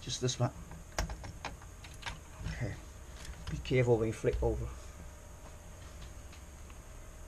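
A metal panel clanks and rattles as it is handled.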